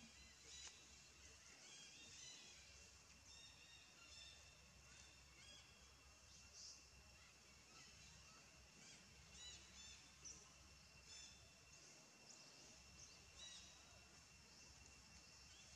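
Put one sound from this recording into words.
A small monkey's claws scratch softly on tree bark as it climbs.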